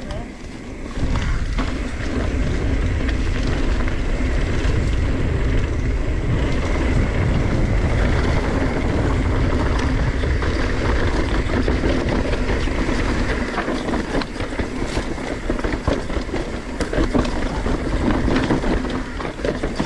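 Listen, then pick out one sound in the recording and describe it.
Wind rushes loudly past a microphone outdoors.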